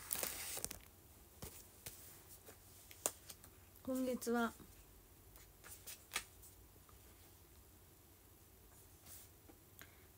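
Book pages rustle and flip.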